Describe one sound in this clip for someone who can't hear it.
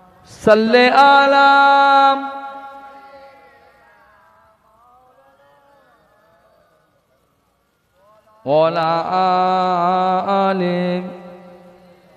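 A man chants long sustained notes into a microphone, echoing in a reverberant hall.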